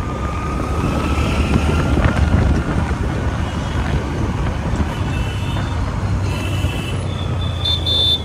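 Traffic rumbles past on the road.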